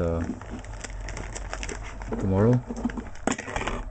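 A plastic mailer's flap is peeled open.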